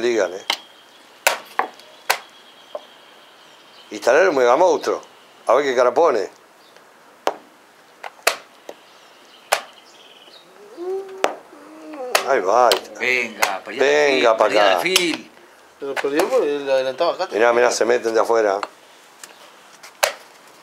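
Chess pieces clack down on a board.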